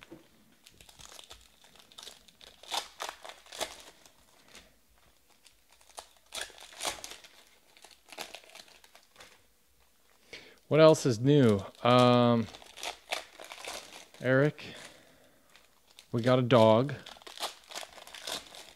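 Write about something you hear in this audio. Foil card wrappers crinkle and rustle as hands tear them open.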